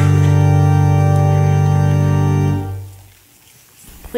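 A piano chord rings out and fades.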